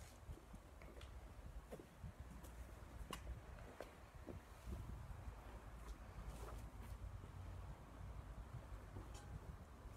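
Footsteps tap softly on stone steps.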